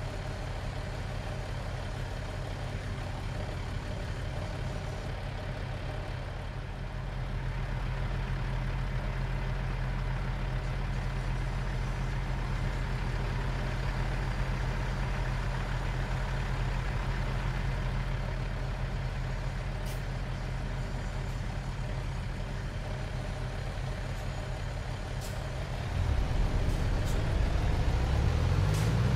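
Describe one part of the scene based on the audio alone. A heavy truck engine rumbles steadily and revs up near the end.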